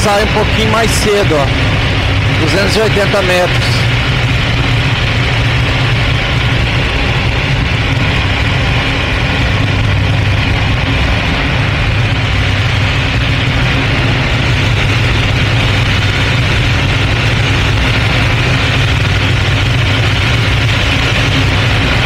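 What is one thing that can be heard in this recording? Wind rushes past an open cockpit.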